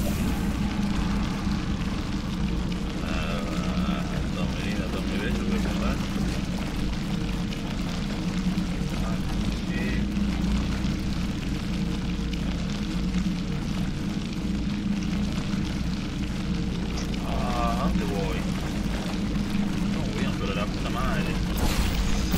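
Thick liquid gushes and splatters from a pipe onto the floor.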